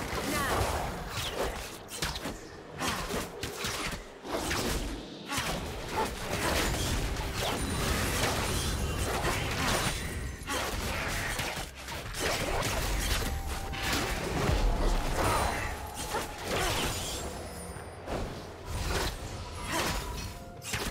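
Game spell effects whoosh and crackle in quick bursts.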